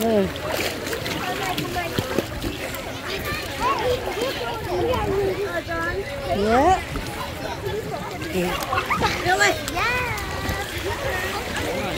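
Children talk and shout with high voices nearby.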